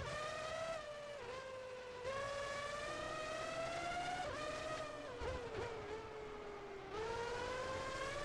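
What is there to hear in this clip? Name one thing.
A racing car engine whines loudly, its pitch rising and dropping with each gear change.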